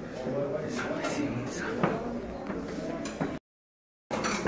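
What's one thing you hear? Footsteps thud on metal stairs.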